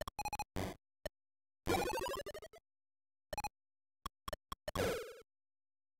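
Retro video game beeps and chirps play in short bursts.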